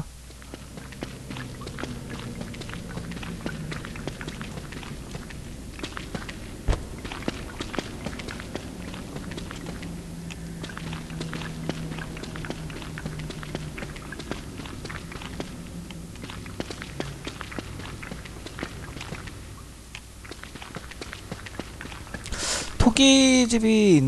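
Footsteps patter steadily on stony ground.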